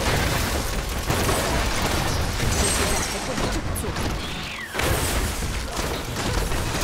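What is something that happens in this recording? Fiery spells burst and roar in quick succession.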